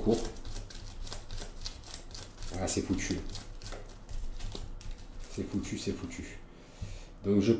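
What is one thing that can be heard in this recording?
Plastic cards click and rattle as hands shuffle them.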